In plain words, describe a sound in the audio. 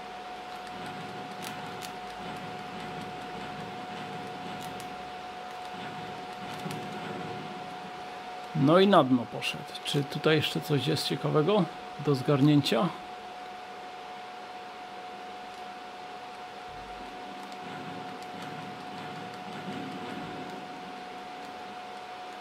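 Video game music and effects play quietly from a television.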